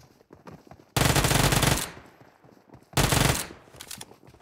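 A submachine gun fires in rapid bursts, loud and close.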